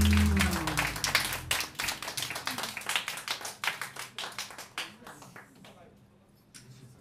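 A band plays loudly with drums, bass and saxophone, then stops.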